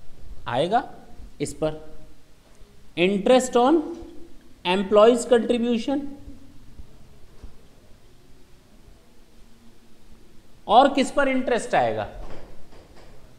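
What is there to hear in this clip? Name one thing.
A man speaks clearly in a lecturing voice, close by.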